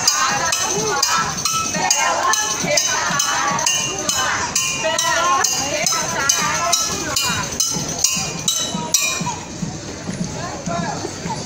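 A crowd of men and women talks and calls out outdoors.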